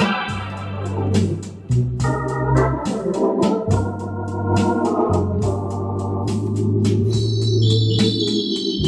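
An electric organ plays a lively tune with a deep bass line.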